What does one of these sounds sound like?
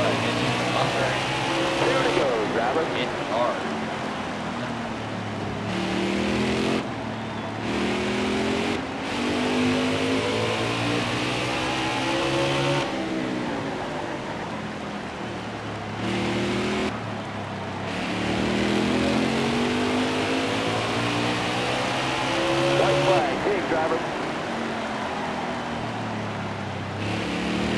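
A racing car engine roars and its pitch rises and falls as it shifts gears.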